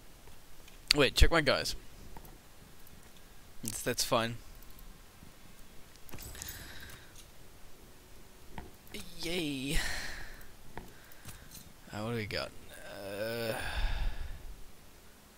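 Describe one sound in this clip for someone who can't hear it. A man talks with animation close to a microphone, in short bursts.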